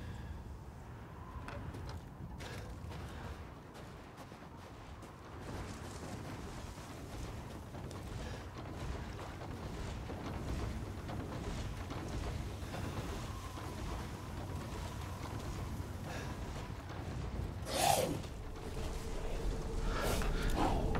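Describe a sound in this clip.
Footsteps crunch slowly through snow.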